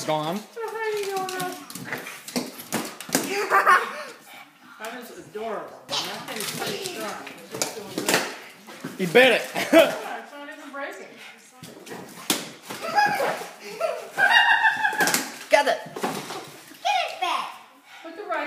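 A small dog's claws click and patter on a wooden floor.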